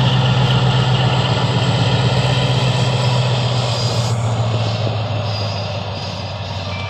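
A diesel locomotive engine drones nearby and fades away.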